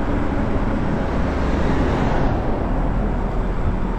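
A large truck roars past close by.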